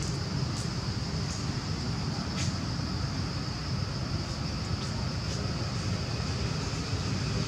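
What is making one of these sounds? A monkey rustles through leafy branches.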